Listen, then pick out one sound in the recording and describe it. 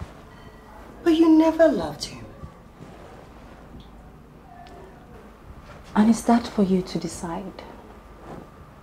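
A young woman answers in a firm, measured voice.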